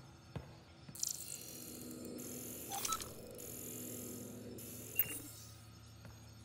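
A scanner beam whirs and buzzes in short electronic bursts.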